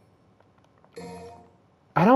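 A game menu chimes as it opens.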